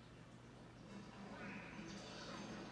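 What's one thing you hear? Game sound effects play from a television loudspeaker.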